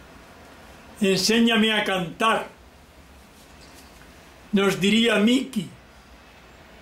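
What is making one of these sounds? An elderly man speaks loudly with animation, close by.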